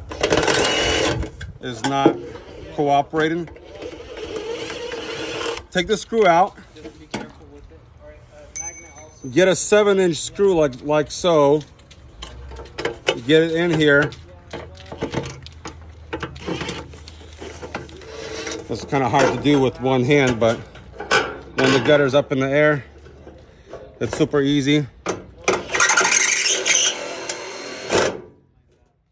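An electric impact driver whirs and rattles in short bursts.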